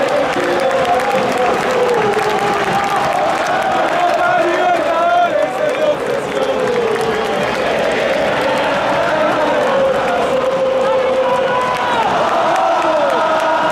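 A large stadium crowd sings and chants loudly throughout.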